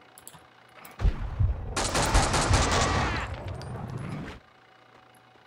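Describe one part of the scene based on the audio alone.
An automatic rifle fires a rapid burst of shots.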